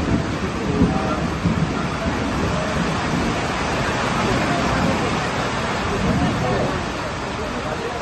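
Wind gusts across the microphone.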